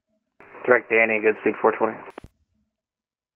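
A young man speaks briefly and calmly into a headset microphone.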